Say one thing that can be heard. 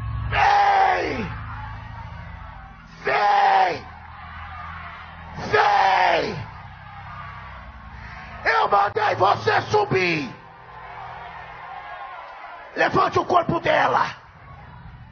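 A man shouts loudly into a microphone, heard through loudspeakers in a large echoing hall.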